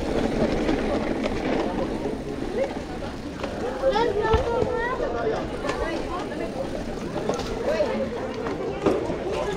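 A crowd of people chatters and calls out nearby outdoors.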